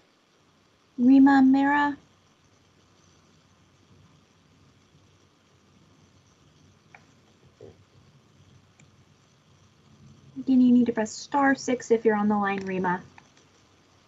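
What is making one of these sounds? A woman speaks briefly and calmly over an online call.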